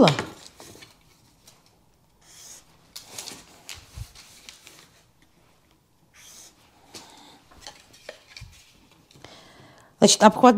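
A wooden ruler slides across paper and taps down.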